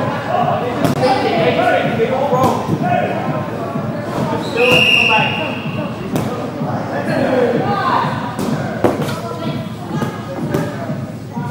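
A ball thuds on a wooden floor.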